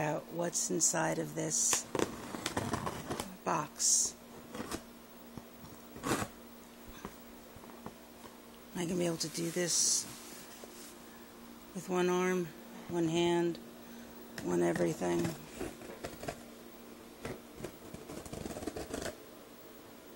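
A blade scrapes and slices through cardboard.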